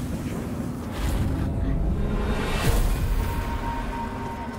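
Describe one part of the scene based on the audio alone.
A magical blast roars and crackles.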